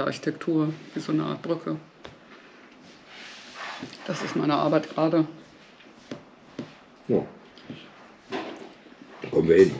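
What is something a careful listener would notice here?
A middle-aged woman speaks calmly and close by, with pauses.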